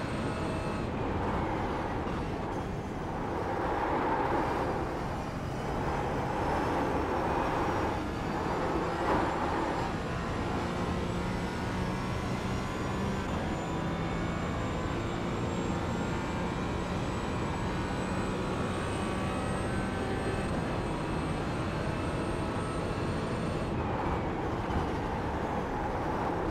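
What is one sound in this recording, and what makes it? A racing car engine roars and revs up through the gears.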